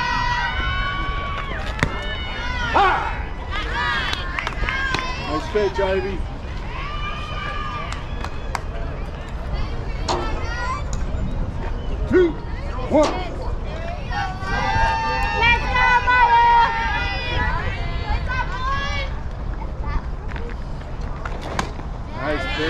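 Young players shout and cheer across an open field.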